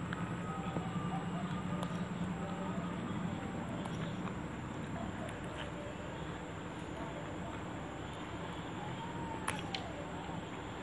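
A woman chews food noisily close by.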